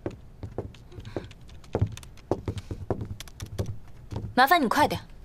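High heels click on a hard floor.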